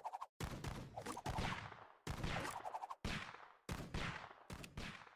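Video game sound effects burst out again and again in quick, noisy blasts.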